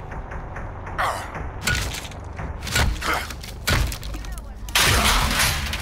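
Blows crash and splinter against a wooden barricade.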